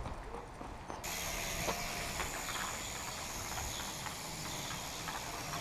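A small drone buzzes overhead with a high, steady whine.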